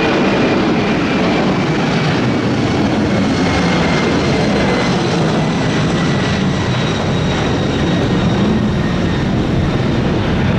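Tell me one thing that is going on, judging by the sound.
Jet engines whine with a high steady tone.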